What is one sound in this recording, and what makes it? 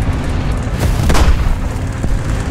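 A loud explosion bursts close by.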